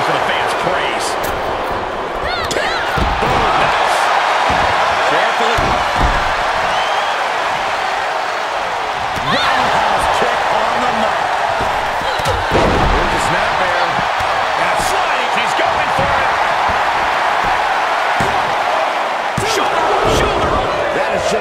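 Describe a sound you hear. Heavy bodies slam and thud onto a wrestling mat.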